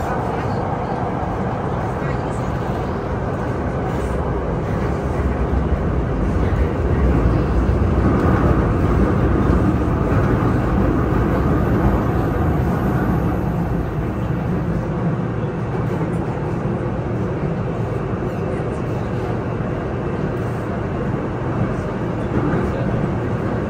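A subway train rumbles loudly along the tracks, swelling and easing.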